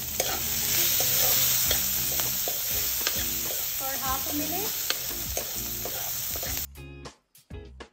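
A metal spatula scrapes and stirs in a pan.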